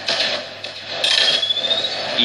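An explosion booms from a game playing through a speaker.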